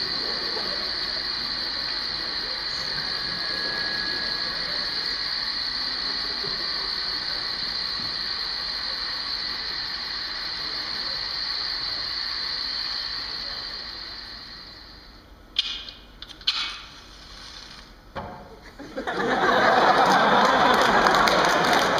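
Rubber balloons squeak and rub as performers handle them.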